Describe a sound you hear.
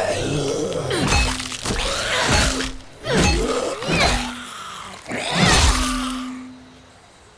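A metal bat smashes down with heavy, wet thuds.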